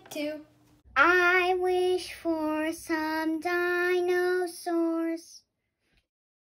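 A second young boy speaks cheerfully.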